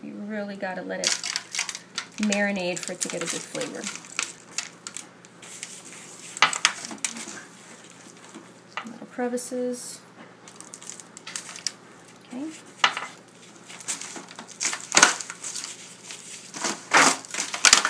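A foil pan crinkles and rattles.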